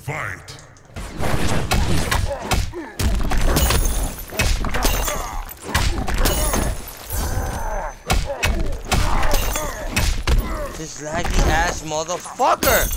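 Heavy punches and kicks thud and crack in quick bursts.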